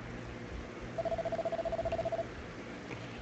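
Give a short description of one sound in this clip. A game's dialogue text ticks out with a rapid, steady beeping.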